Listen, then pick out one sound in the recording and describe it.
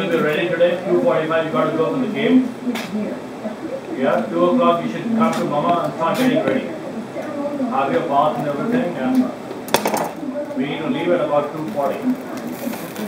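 A man talks calmly.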